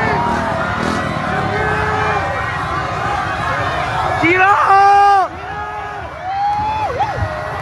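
A large crowd of fans chants and cheers loudly outdoors.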